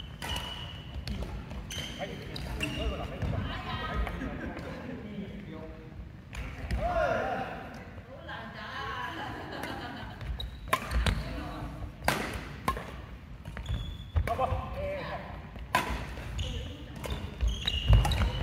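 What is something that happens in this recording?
Paddles strike a ball with sharp knocks in an echoing hall.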